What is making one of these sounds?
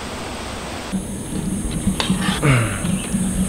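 Spoons clink against plates and bowls.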